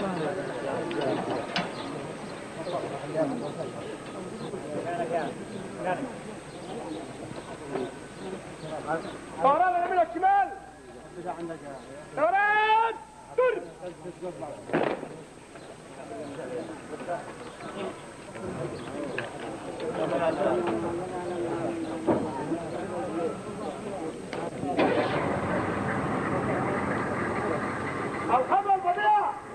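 A crowd of men murmurs outdoors.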